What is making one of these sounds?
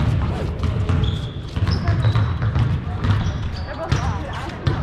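Sneakers squeak sharply on a polished floor.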